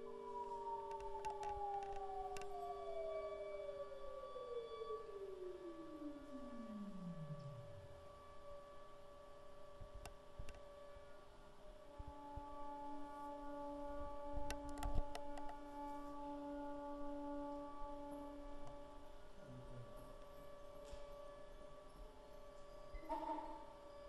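Electronic game music plays through loudspeakers in a large hall.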